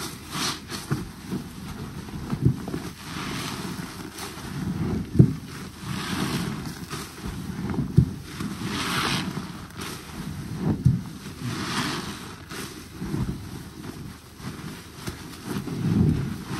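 Soapy water sloshes and squelches as cloth is squeezed and rubbed by hand.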